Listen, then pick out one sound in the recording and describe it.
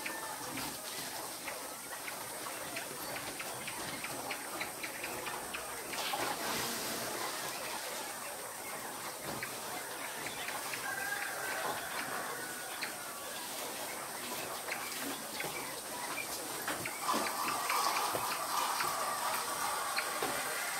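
Many birds chirp and cluck from cages.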